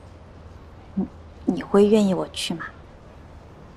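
A young woman asks a question in a surprised voice.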